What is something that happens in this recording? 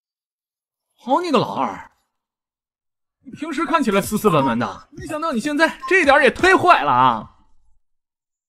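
A young man speaks with animation close by.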